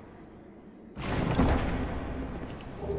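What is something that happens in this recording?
A heavy chest lid creaks open with a deep rumble.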